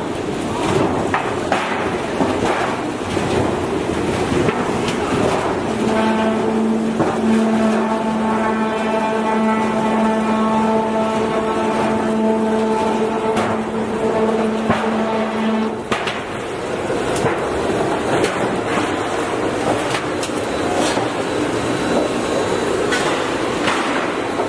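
Metal rollers clank as a steel sheet feeds through.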